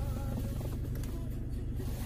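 A dial on a car console clicks as it is turned.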